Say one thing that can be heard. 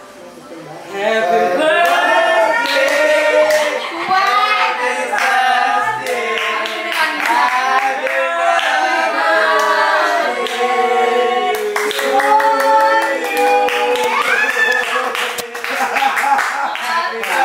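A group of people sing together.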